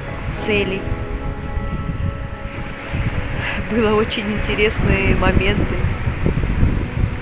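Waves break and wash up on a pebbly shore.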